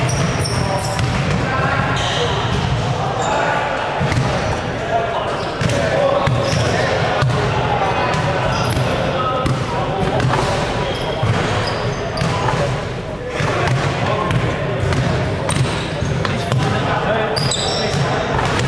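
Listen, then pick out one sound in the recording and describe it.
Many men talk and call out in a large echoing hall.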